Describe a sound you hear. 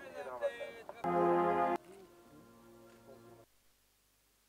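A military brass band plays a slow tune.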